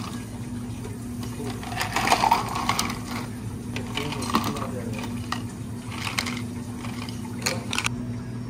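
Ice cubes clink and rattle as they drop into plastic cups.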